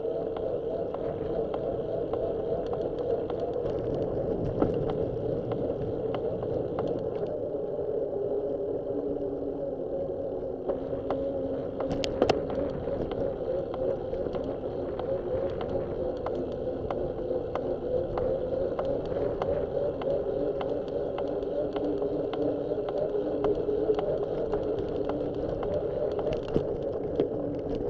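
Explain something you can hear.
Wind buffets steadily while riding along a street.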